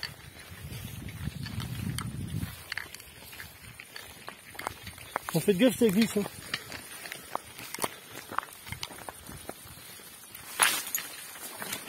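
Branches and tall grass rustle and brush past close by.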